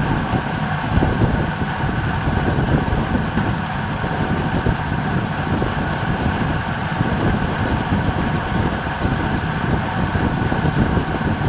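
Wind rushes loudly past a fast-moving bicycle.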